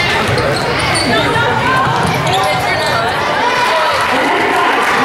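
Young women players shout to each other on the court.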